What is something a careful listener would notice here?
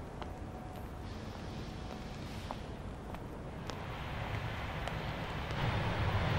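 Footsteps tap on pavement as a woman walks.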